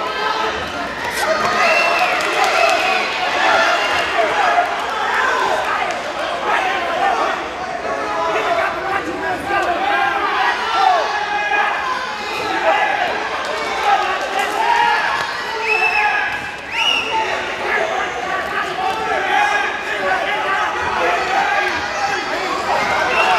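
Gloved punches thud against a boxer's body.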